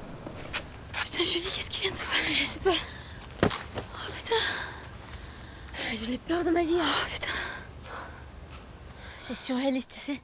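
A second young woman exclaims in distress, close by.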